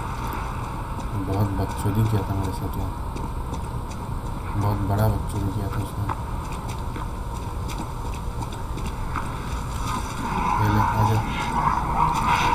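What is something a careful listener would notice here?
Footsteps run across cobblestones.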